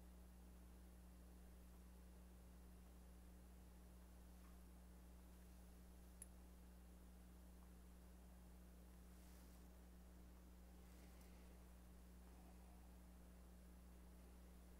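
Cloth rustles softly as a flag is folded.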